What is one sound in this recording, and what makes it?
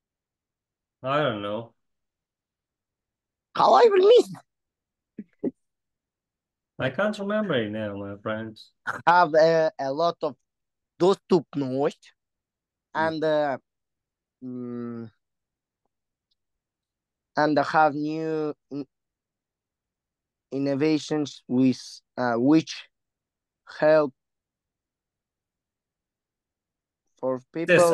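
A young man speaks calmly with pauses, heard through an online call.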